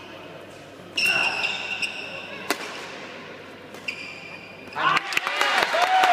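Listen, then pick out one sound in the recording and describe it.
Shoes squeak sharply on a sports floor.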